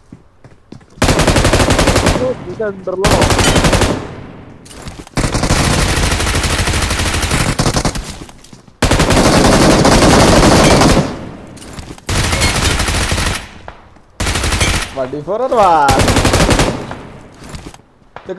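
Gunfire rattles in loud rapid bursts.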